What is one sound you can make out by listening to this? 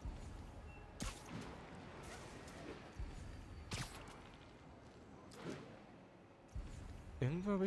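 Web lines shoot out with sharp, whooshing snaps, again and again.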